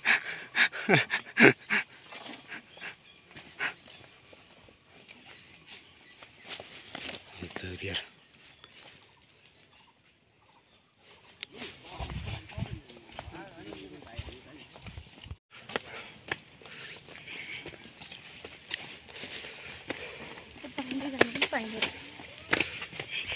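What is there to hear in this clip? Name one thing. Footsteps scuff on a concrete path outdoors.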